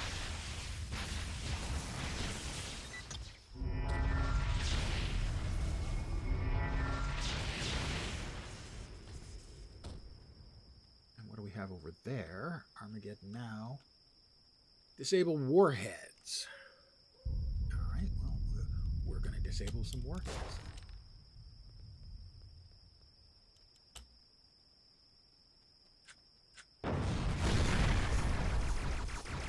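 Fighting sound effects clash and whoosh in a video game.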